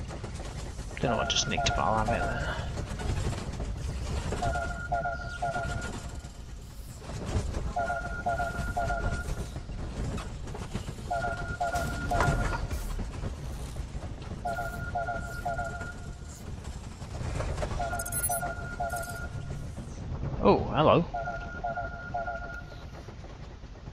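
An electronic alarm beeps in a repeating pattern.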